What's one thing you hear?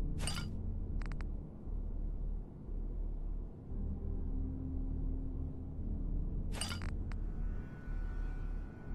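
A low game hum drones steadily.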